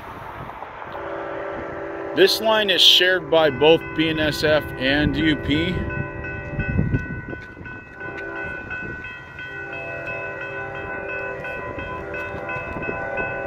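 Electronic railroad crossing bells ring.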